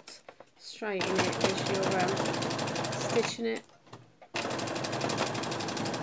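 A sewing machine runs in quick, steady bursts.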